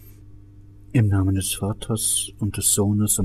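An elderly man speaks aloud in a clear, steady voice.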